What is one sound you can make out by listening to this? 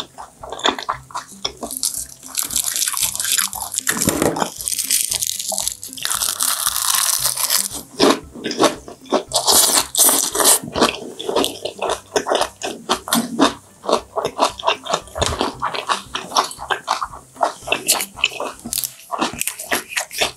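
A young woman chews and crunches food loudly close to a microphone.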